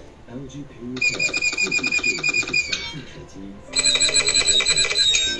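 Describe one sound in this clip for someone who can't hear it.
A high, squeaky cartoon voice chatters quickly from small device speakers.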